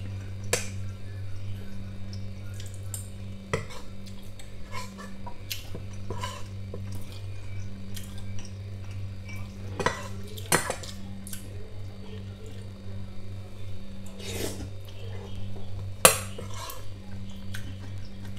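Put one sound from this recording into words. A man chews crunchy food close to a microphone.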